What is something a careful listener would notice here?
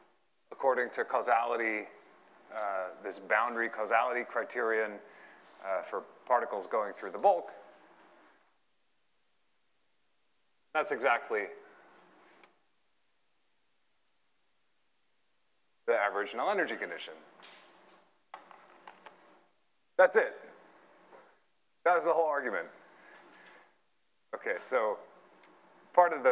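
A man lectures calmly through a clip-on microphone, in bursts with pauses.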